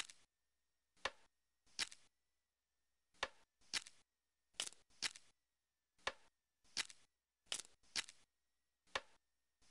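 Jigsaw pieces snap into place in a game with short, repeated swooshing clicks.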